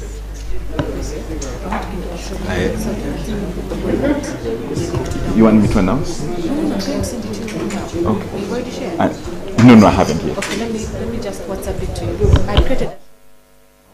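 Several men and women chat and murmur at once in a room.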